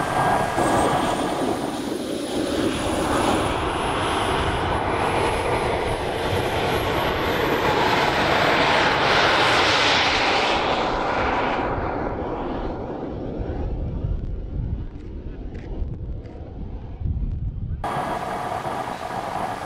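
A small jet engine on a model car roars loudly and then fades into the distance.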